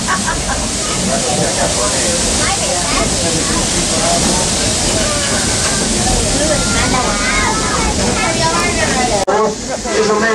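Wind and rain rush steadily.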